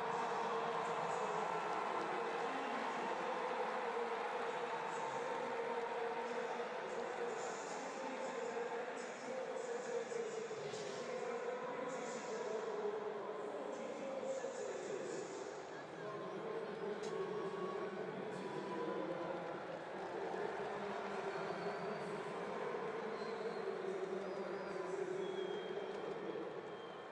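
A large stadium crowd murmurs and cheers steadily in a wide open space.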